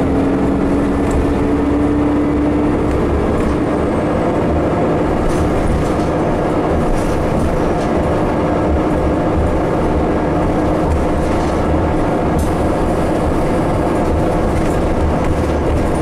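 A bus engine rumbles steadily while riding.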